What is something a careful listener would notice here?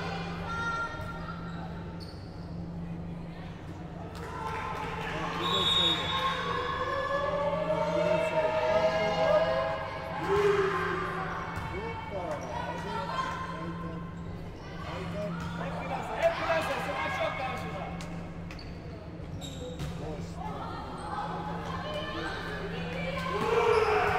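Spectators cheer and shout in an echoing hall.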